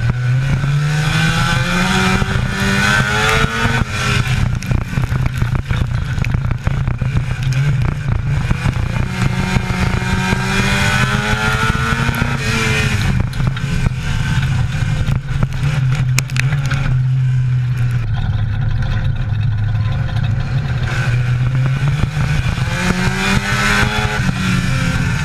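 A race car engine roars loudly up close, rising and falling in pitch as it revs.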